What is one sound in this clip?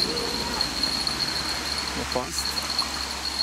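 Water splashes as a fish thrashes in a net.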